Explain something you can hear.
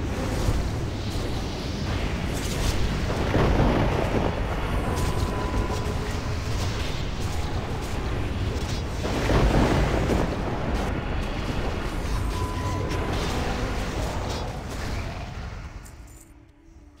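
Spells crackle and weapons clash in a noisy fight.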